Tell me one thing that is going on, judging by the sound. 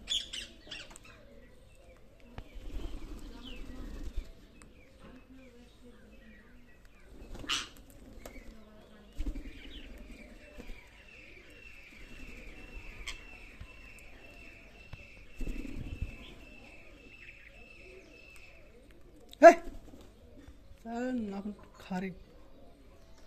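Parrots squawk and chirp close by.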